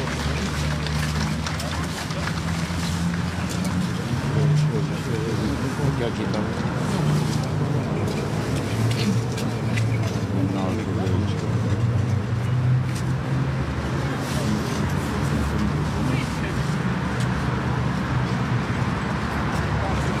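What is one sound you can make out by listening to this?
Long folk horns play low, sustained notes outdoors.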